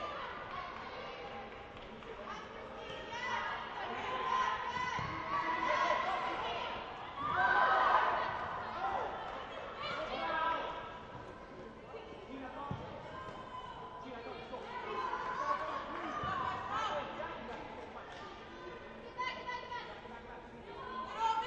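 Young women shout to each other across a large echoing hall.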